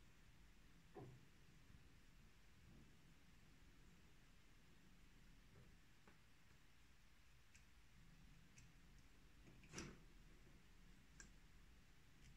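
Small metal pen parts click and tap softly close by.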